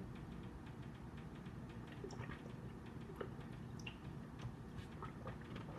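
A man gulps water from a plastic bottle.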